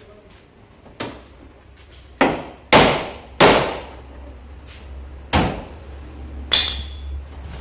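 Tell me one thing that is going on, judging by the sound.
A hammer bangs on a car's front end.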